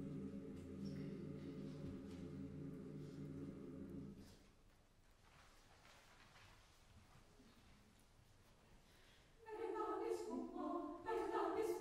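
A large choir sings together in a reverberant hall.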